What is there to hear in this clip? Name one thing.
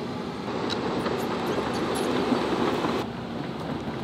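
An excavator engine roars as its bucket scrapes soil.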